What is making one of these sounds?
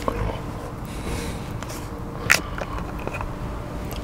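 A plastic bottle cap clicks open.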